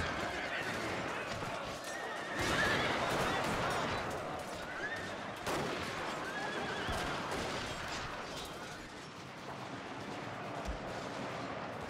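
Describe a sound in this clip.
A large army clashes in a loud, steady battle din.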